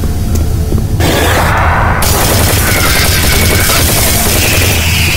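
A gun fires rapid loud shots.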